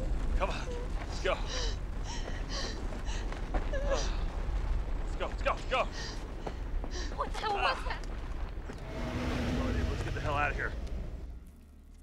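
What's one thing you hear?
A man grunts and pants with effort.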